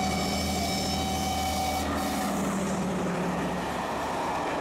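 A diesel locomotive rumbles loudly as it passes close by.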